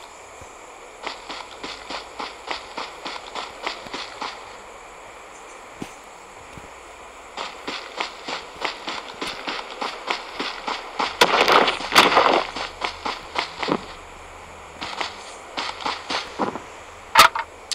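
A game character's footsteps rustle quickly through grass.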